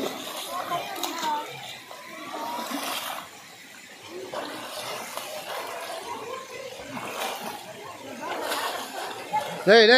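A young man splashes water with his hands.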